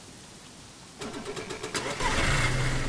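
A car engine starts up and idles with a low rumble.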